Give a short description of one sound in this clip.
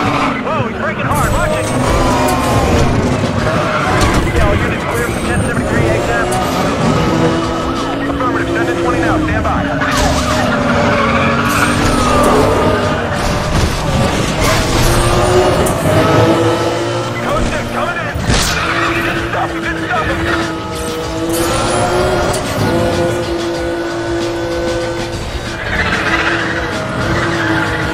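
A sports car engine roars at high speed, its pitch rising and falling as it shifts gears.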